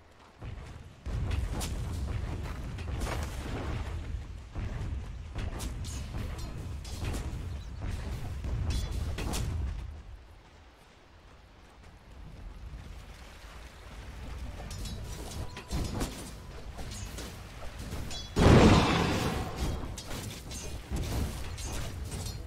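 Weapons clash and hit in quick bursts.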